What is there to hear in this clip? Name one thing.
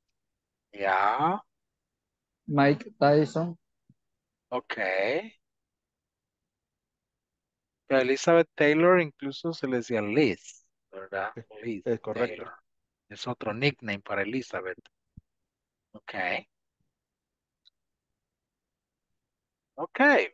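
A man speaks calmly through an online call, with pauses between phrases.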